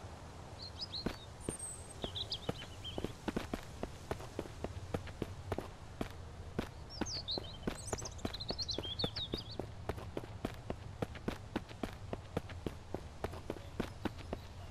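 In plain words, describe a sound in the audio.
Footsteps crunch steadily over leaves and forest ground.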